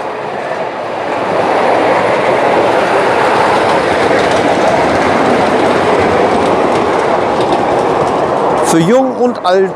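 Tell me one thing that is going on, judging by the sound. A miniature train rumbles along rails close by.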